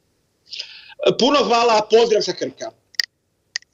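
An elderly man speaks through an online call.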